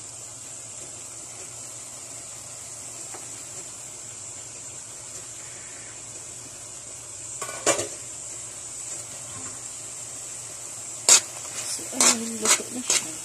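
Food sizzles gently in a pan.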